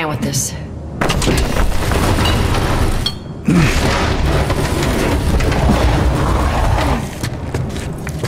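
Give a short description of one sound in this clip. A heavy wooden cabinet scrapes loudly across a wooden floor.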